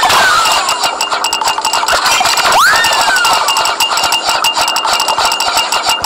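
A cartoonish game jingle plays with bright, repeating chimes.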